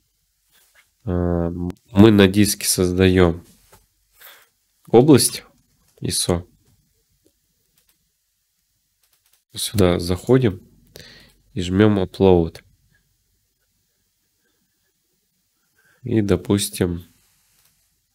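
A young man talks calmly and close to a microphone, in short bursts with pauses.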